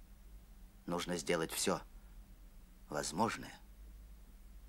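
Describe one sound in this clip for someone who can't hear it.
A man speaks in a low, serious voice.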